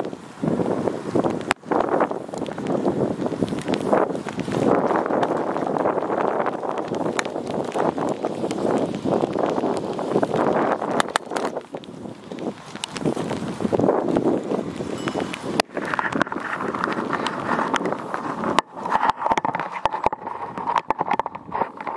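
Wind buffets a microphone outdoors with a loud rumble.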